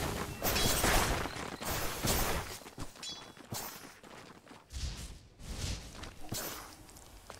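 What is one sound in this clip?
Sharp hits and impacts ring out in bursts.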